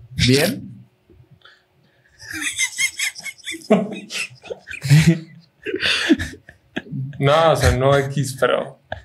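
Several young men laugh close to microphones.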